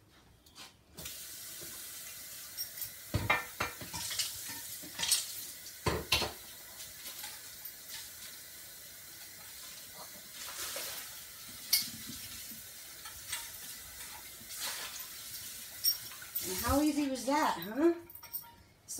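Water runs steadily from a tap into a sink.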